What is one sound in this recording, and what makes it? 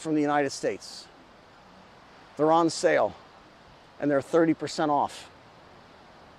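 A middle-aged man speaks calmly and close into a clip-on microphone, in short phrases with pauses.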